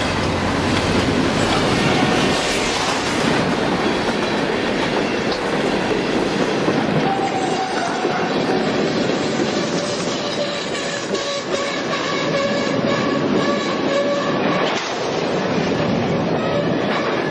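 A model train rumbles and clatters steadily along its tracks.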